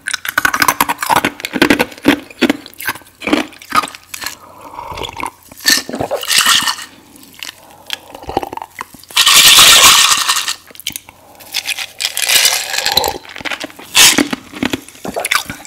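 Ice cubes clink and rattle in a glass close to a microphone.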